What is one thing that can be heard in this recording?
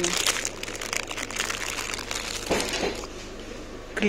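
A plastic package rustles and crinkles in a hand.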